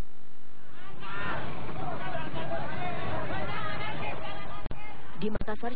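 A crowd shouts and clamours outdoors.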